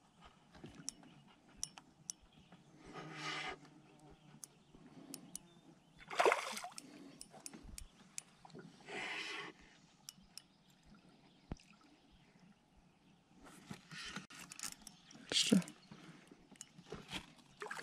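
A fishing reel whirs and clicks as line is wound in.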